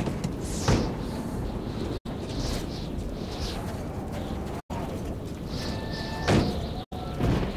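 Wind blows steadily outdoors, with loud gusts now and then.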